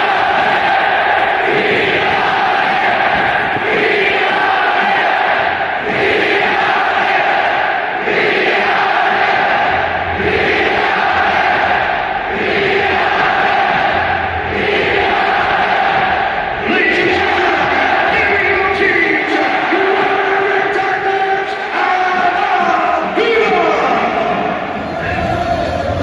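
A huge crowd sings and chants loudly in rhythm in a large open stadium.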